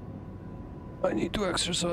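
A young man talks close into a microphone.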